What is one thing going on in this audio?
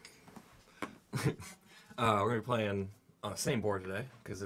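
A young man laughs and exclaims loudly.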